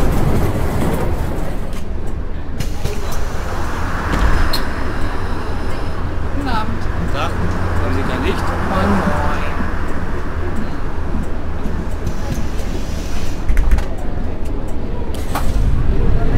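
A bus engine idles more quietly while the bus stands still.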